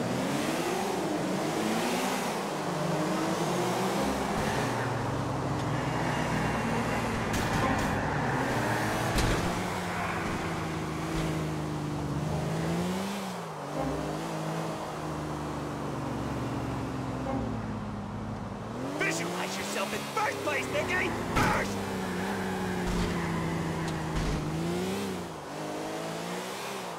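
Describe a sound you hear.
A sports car engine revs hard, rising and falling as it shifts gears.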